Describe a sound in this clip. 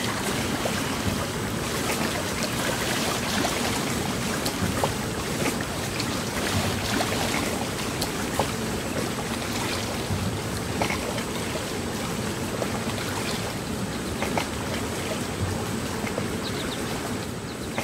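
A motorboat engine hums in the distance.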